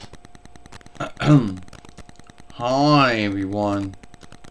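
A man speaks close by in a playful, high-pitched voice.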